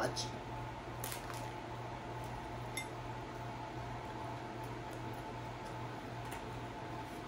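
A woman chews food with soft, wet sounds.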